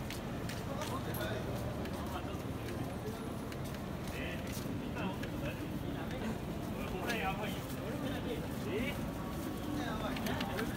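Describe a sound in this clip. Traffic hums steadily outdoors on a city street.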